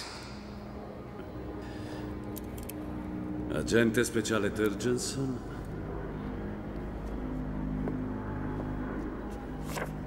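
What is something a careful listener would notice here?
A man speaks calmly and low, close by.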